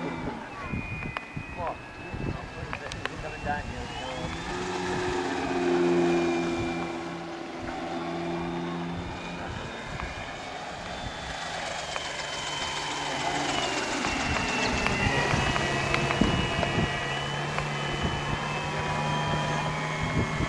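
A small model autogyro's engine buzzes high overhead, rising and falling in pitch as it passes.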